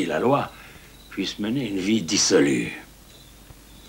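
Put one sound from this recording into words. A middle-aged man speaks calmly nearby.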